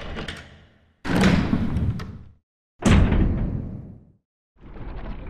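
A heavy door creaks slowly open with a deep rumble.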